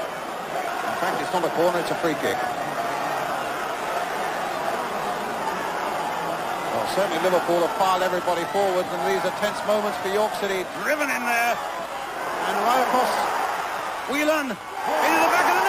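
A large crowd sings and chants in an open stadium.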